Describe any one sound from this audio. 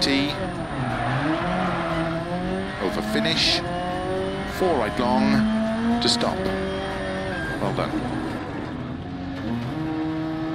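A rally car engine revs hard and drops in pitch with each gear change.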